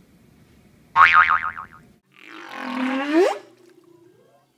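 A young girl shrieks and laughs excitedly close by.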